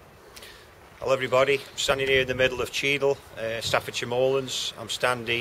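A middle-aged man speaks calmly and close by, outdoors.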